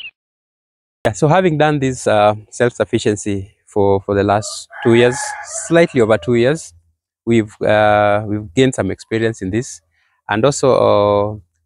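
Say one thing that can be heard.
A young man speaks loudly and with animation.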